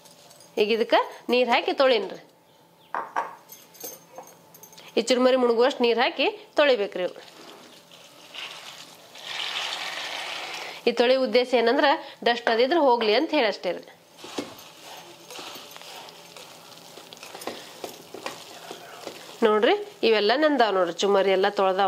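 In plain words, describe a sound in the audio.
A woman speaks calmly and close by, through a small microphone.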